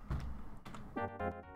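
Electronic arcade game music starts to play.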